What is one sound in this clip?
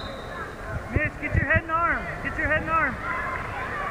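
A man shouts encouragement loudly.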